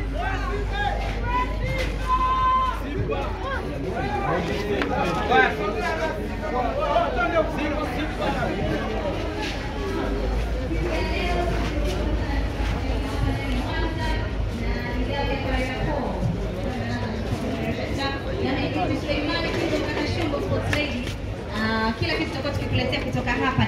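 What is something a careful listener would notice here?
Young women cheer and scream with excitement close by.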